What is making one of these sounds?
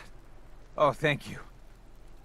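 A man speaks with relief, close by.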